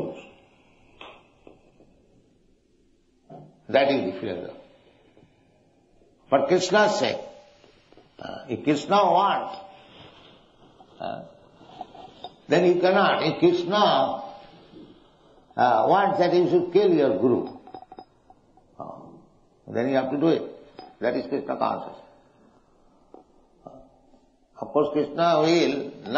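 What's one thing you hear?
An elderly man speaks slowly and firmly into a microphone, in short phrases with pauses.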